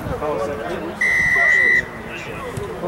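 A referee's whistle blows one long, shrill blast.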